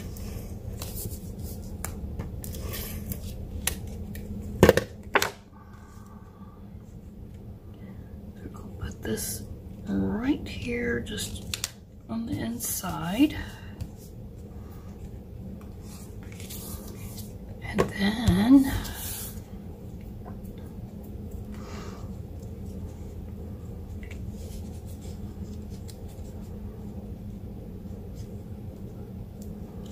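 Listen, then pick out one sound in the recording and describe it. Stiff paper rustles and slides under hands.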